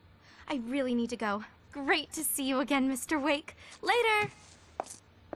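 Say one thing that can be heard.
A young woman talks cheerfully and quickly.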